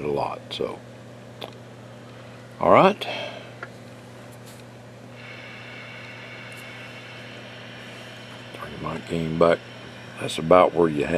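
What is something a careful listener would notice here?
A radio receiver hums and hisses steadily.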